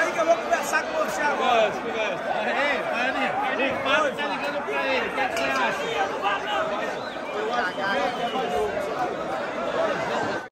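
A crowd of men chatters loudly all around, close by.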